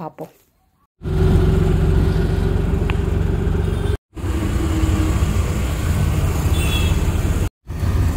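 An auto-rickshaw engine rumbles loudly while riding through traffic.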